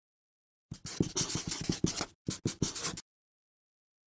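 A marker squeaks as it writes on paper.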